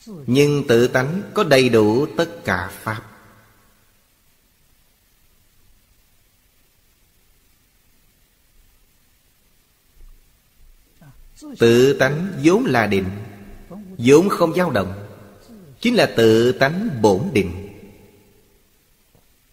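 An elderly man speaks calmly, close to a microphone.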